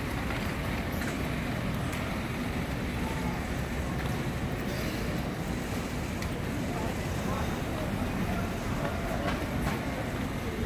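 Footsteps patter on a pavement.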